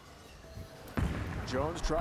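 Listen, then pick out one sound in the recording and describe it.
A bowling ball strikes the pins with a loud crash.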